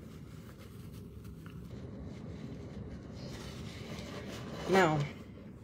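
A young woman blows her nose into a tissue.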